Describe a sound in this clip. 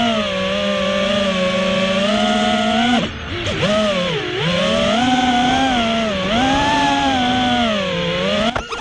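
Drone motors whine loudly and steadily, rising and falling in pitch as the drone swoops and flips.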